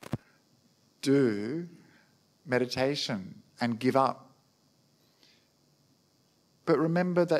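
A man speaks calmly into a microphone, with pauses.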